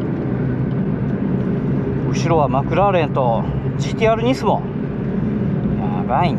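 A car engine drones steadily from inside the cabin.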